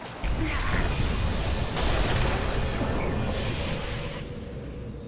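A magical blast explodes with a loud roar.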